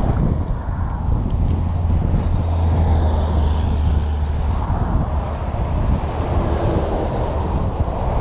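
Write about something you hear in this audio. Cars and trucks rush past on a road nearby.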